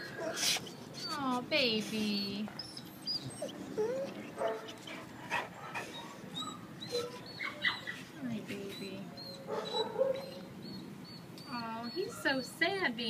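A dog whines in high, wavering cries.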